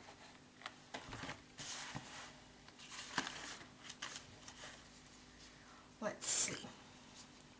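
Paper pages rustle and flap as a sketchbook is turned over.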